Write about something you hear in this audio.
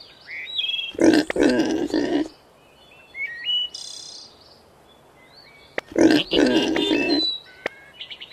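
Cartoon pigs grunt and squeal loudly in short bursts.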